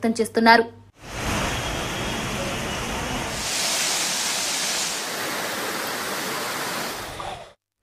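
Water gushes and roars over a weir.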